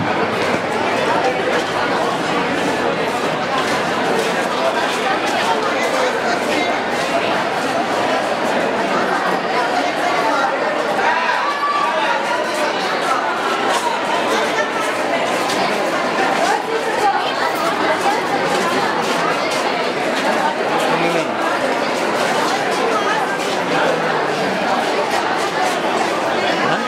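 A crowd of men and women chatter close by all at once.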